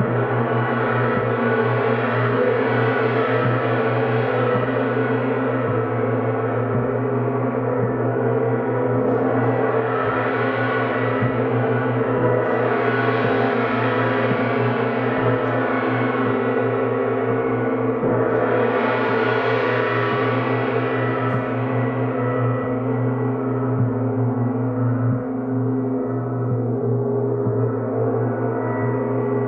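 A singing bowl is rubbed, giving a steady humming ring.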